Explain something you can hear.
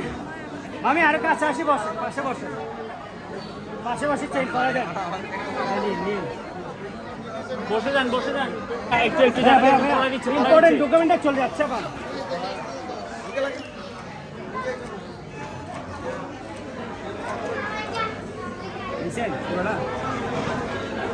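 Several men and women talk together nearby in a lively crowd.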